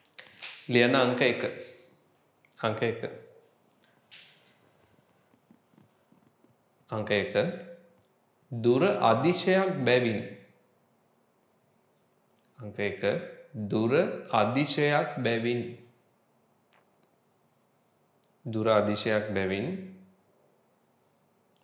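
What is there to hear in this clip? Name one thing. A young man speaks calmly and clearly in short phrases close to a microphone, with pauses between them.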